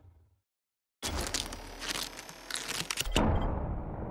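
A game's crafting sound effect clatters and whirs.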